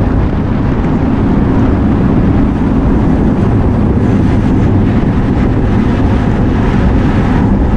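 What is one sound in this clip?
Wind roars loudly across a microphone while riding outdoors.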